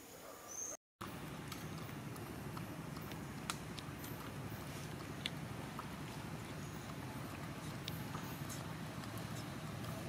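A small monkey slurps and sucks a drink through a straw.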